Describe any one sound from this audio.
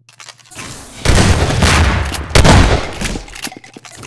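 A rocket explodes with a loud boom.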